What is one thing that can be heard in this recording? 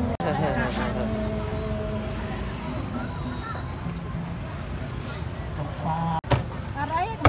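Women chat and laugh close by.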